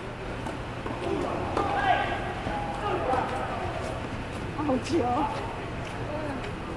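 Men call out to each other from across the court.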